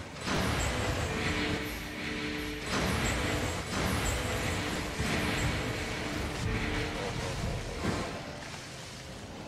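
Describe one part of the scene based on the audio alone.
Magic spells crackle and burst in rapid succession.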